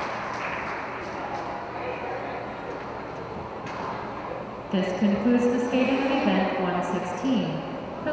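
Ice skate blades scrape and glide across the ice in a large echoing rink.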